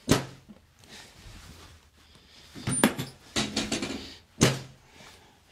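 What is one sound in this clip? A chiropractic table drops with a sharp thud.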